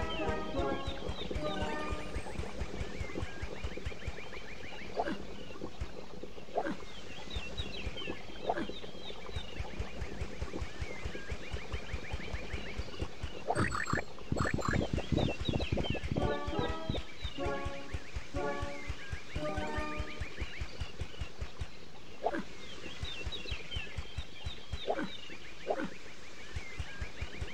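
Cheerful game music plays throughout.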